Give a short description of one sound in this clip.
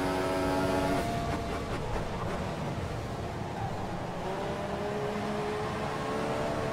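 A racing car engine drops in pitch as the car brakes hard, then revs up again.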